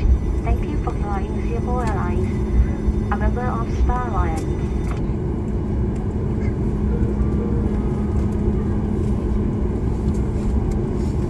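A jet engine roars steadily as an airliner taxis.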